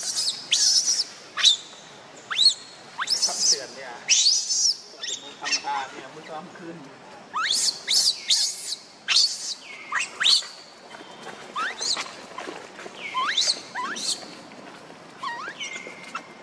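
A baby monkey screeches and cries in high, shrill bursts, close by.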